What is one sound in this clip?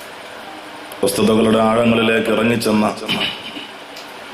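A man speaks loudly and with feeling into a microphone, his voice carried through loudspeakers.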